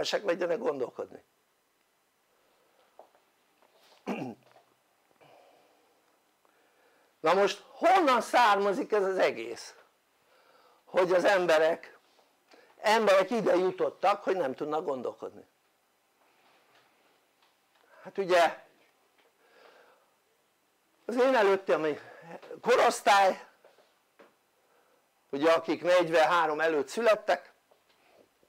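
An elderly man speaks with pauses through a clip-on microphone, in a calm, lecturing voice.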